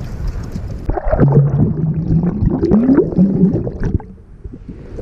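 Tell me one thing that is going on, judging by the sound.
Water gurgles loudly as the microphone dips under the surface.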